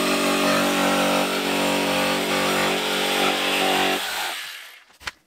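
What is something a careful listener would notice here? An electric jigsaw buzzes loudly as it cuts through a board.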